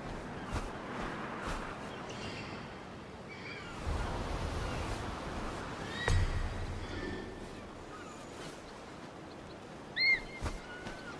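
Wind rushes steadily past a soaring eagle.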